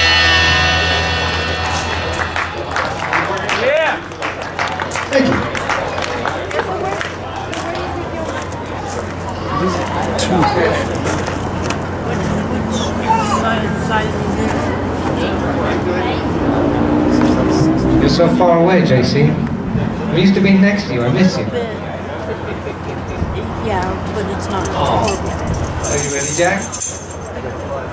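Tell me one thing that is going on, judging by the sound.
A live band plays amplified rock music.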